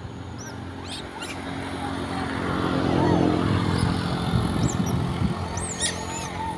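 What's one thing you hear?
A motorbike engine rumbles past nearby, growing louder and then fading.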